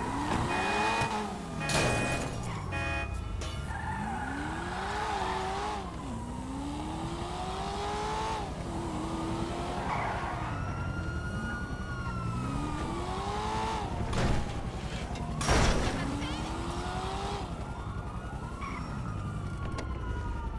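A car engine revs up and down as the car speeds along.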